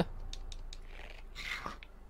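A metal lever clunks.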